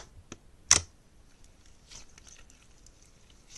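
Soft squishing comes from slime squeezed between hands.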